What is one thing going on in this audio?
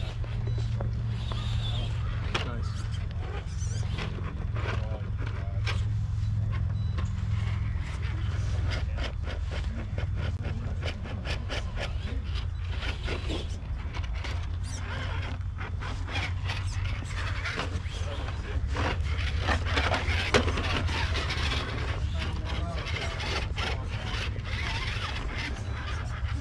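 Plastic tyres clatter and scrape on stones.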